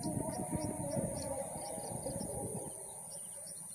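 Wind gusts outdoors, rustling through tall grass.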